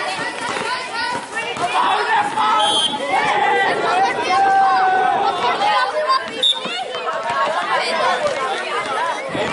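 Many boys shout and call out excitedly outdoors.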